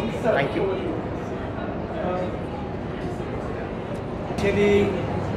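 A middle-aged woman speaks calmly into a nearby microphone.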